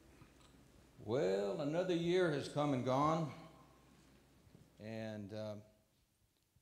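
An older man speaks slowly through a microphone.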